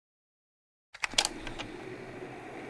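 A button clicks on a portable cassette player.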